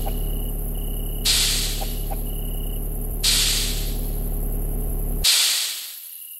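A machine rumbles and drones heavily.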